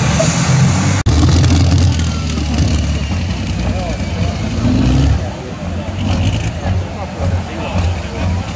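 A diesel engine idles and rumbles nearby.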